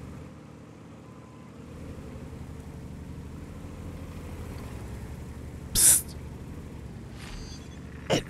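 Heavy tank engines rumble and clank steadily.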